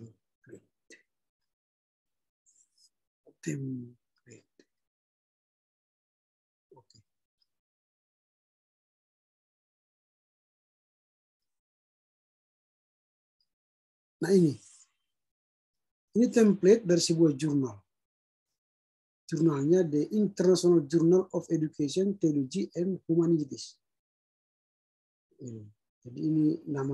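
A man speaks calmly in short bursts through an online call.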